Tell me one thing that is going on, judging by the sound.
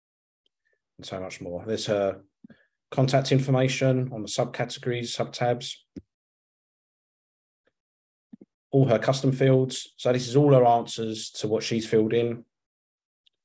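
A man speaks calmly and close to a microphone, in an online call.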